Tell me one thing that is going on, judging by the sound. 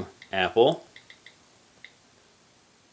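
Soft clicks sound as keys are tapped on a tablet's touch keyboard.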